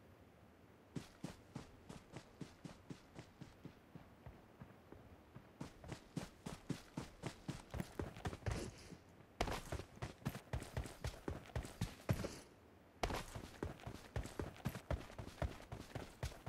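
Quick footsteps run steadily over ground.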